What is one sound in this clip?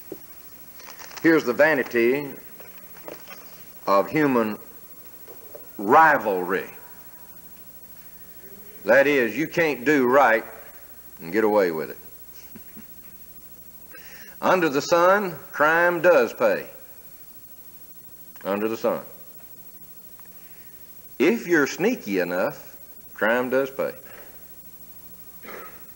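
An elderly man speaks slowly and deliberately into a microphone, in a large hall with a slight echo.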